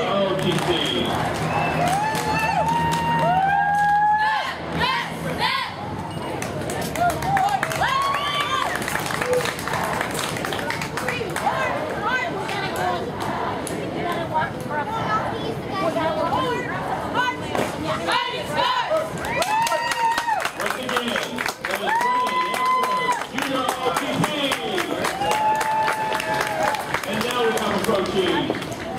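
Footsteps of a marching group tramp on pavement in a steady rhythm.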